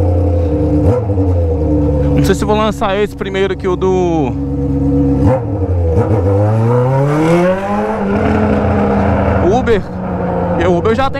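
An inline-four motorcycle with a straight-pipe exhaust rides along a street.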